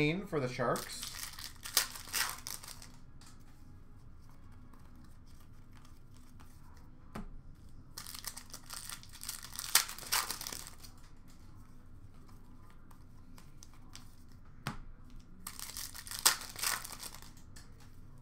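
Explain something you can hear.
Foil card packs crinkle as they are torn open.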